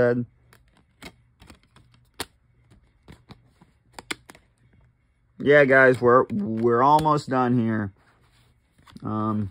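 Plastic disc cases click and tap softly as they are handled.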